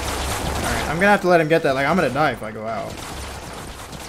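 A man speaks into a headset microphone with animation.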